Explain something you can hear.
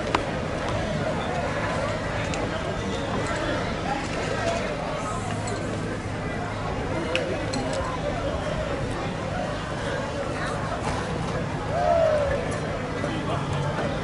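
A crowd of men and women murmurs and talks nearby outdoors.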